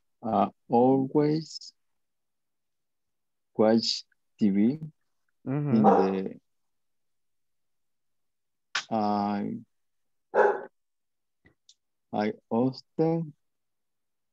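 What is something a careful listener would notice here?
A man speaks calmly over an online call, in short phrases with pauses.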